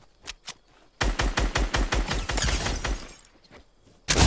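A video game rifle fires a rapid burst of shots.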